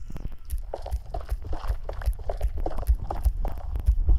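A pickaxe chips repeatedly at a block of stone.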